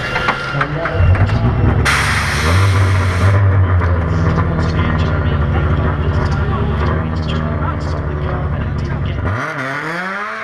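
A race car engine idles with a deep rumble.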